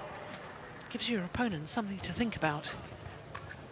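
Players' shoes squeak sharply on the court.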